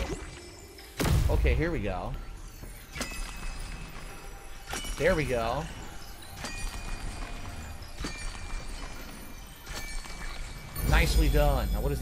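Magical chimes shimmer and swell in bursts.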